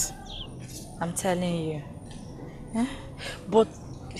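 A young woman speaks in a pleading voice, close by.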